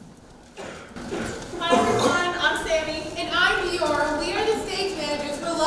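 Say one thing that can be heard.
A young woman sings through a microphone in a large hall.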